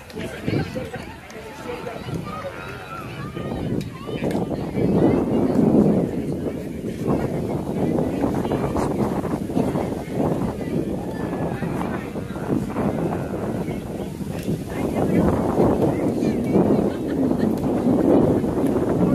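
Wind blows outdoors, buffeting the microphone in strong gusts.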